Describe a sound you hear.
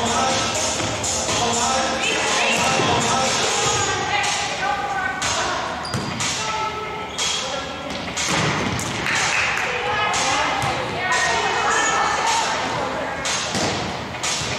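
Young women call out and shout to each other on the court.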